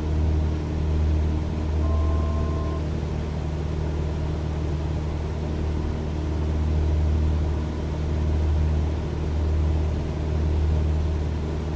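A small propeller plane's engine drones steadily with a low, throbbing hum.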